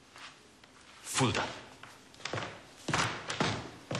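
A man answers in a calm voice.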